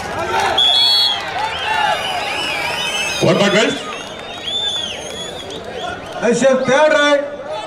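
Young men shout to each other loudly nearby.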